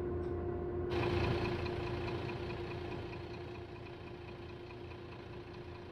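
A city bus engine hums while driving.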